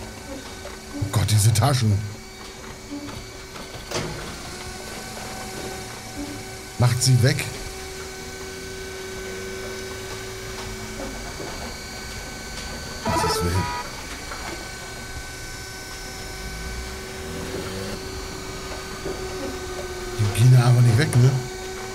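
A man talks into a close microphone now and then.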